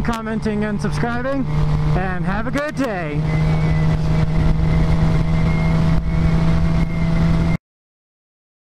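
A motorcycle engine drones steadily at speed, its pitch rising and dropping through quick gear changes early on.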